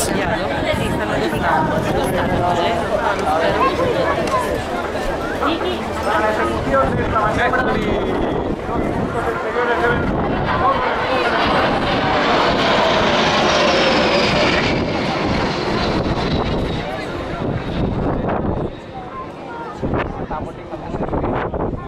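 Jet engines roar loudly overhead, rising and then fading as the planes pass.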